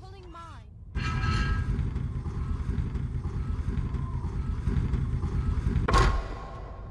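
A heavy stone mechanism rumbles and grinds steadily.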